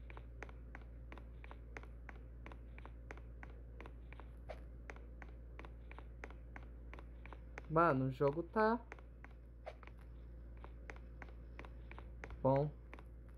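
Footsteps tap quickly and evenly on a wooden floor.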